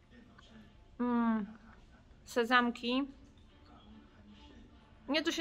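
A middle-aged woman speaks calmly in short bursts, close to the microphone.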